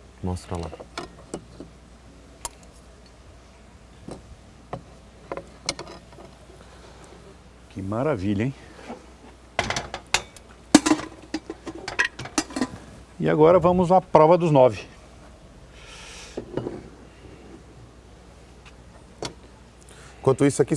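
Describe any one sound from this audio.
Spoons clink against bowls and a pot.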